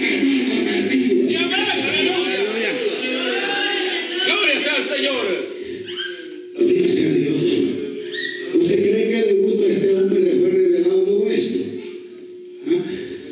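A middle-aged man speaks with animation through a microphone in an echoing room.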